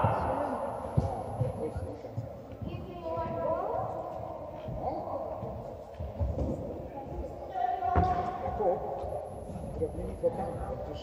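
A tennis ball is struck with a racket, each hit echoing through a large hall.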